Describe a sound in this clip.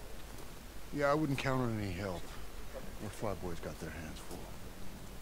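A second man answers in a low, steady voice.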